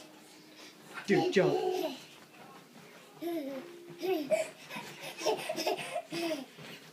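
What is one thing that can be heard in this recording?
A toddler laughs loudly.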